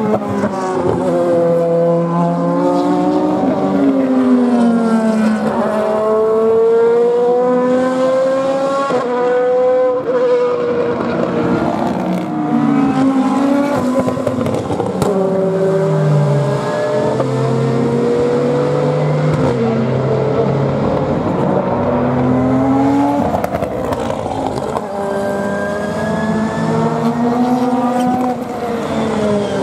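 GT race cars accelerate hard out of a corner one after another, engines rising through the gears.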